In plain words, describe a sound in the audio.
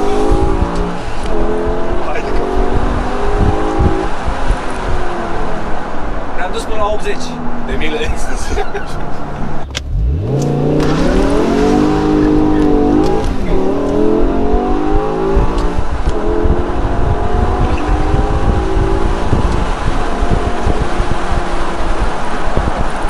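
Wind rushes loudly past an open car.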